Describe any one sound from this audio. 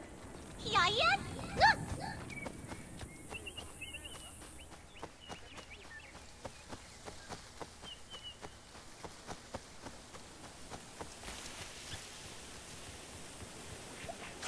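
Footsteps run quickly over sand and grass.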